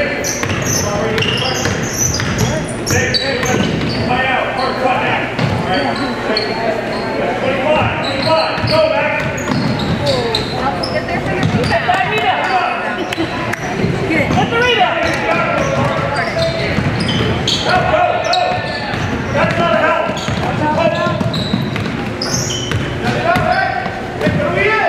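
A basketball is dribbled on a hardwood floor in an echoing gym.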